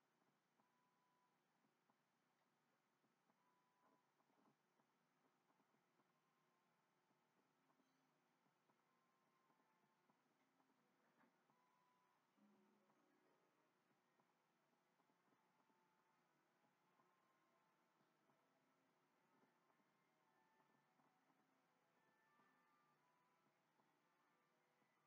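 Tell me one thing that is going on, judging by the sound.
Soft video game music plays faintly from a television speaker.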